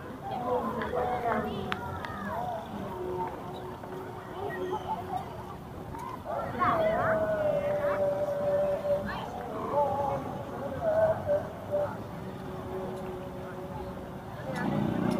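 Children and adults chatter and call out at a distance in an open outdoor space.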